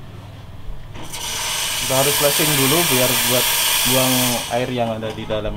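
An espresso machine's steam wand hisses loudly in a short burst.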